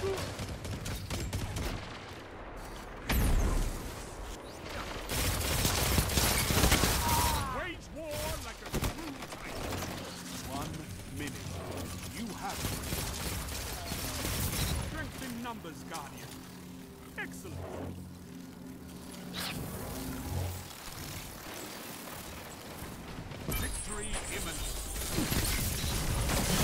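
Rifle shots crack sharply, one after another.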